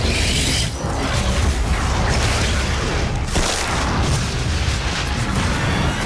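A monster's body is ripped apart with a wet crunch.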